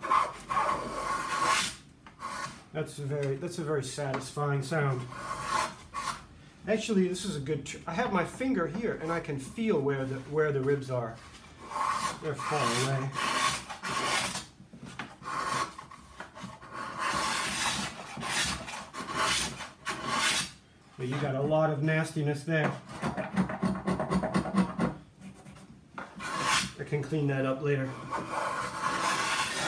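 A blade scrapes and shaves along wooden edges.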